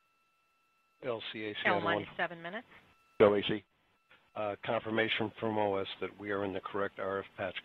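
A man speaks calmly over a radio headset.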